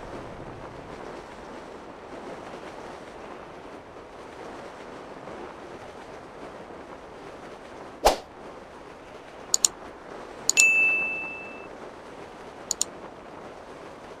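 Wind rushes steadily past a falling parachutist.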